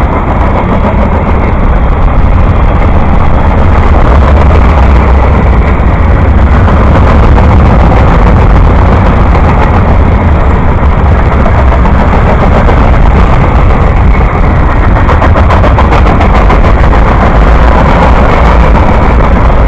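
A long freight train rumbles past close by, its wheels clacking steadily on the rails.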